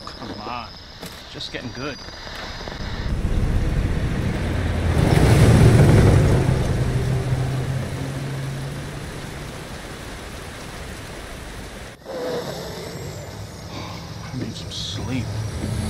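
A middle-aged man speaks wearily, close by.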